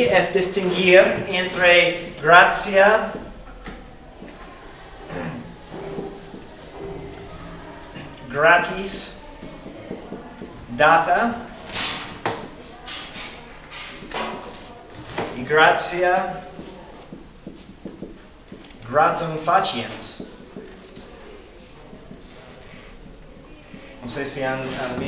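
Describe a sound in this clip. A man speaks calmly, pausing often.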